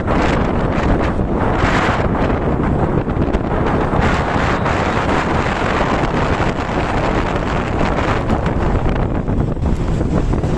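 Wind roars over the microphone of a fast-moving rider.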